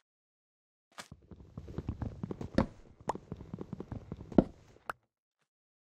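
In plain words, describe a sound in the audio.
Rapid hollow knocks of wood being chopped.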